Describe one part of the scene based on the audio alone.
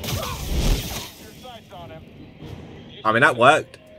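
A laser sword hums and swooshes.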